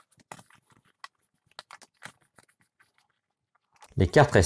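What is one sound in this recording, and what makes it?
Playing cards rustle and click softly as hands handle them.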